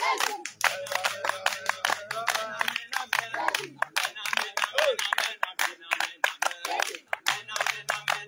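Several men sing together outdoors.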